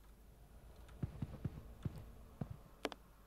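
Footsteps tap slowly on a hard floor.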